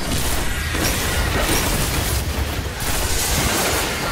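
A loud explosion booms in a video game.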